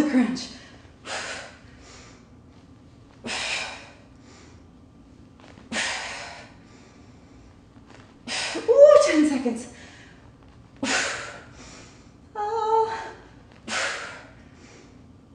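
A woman breathes out sharply in rhythm with her effort.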